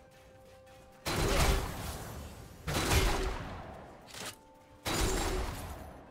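Video game spell effects whoosh and crash in loud bursts.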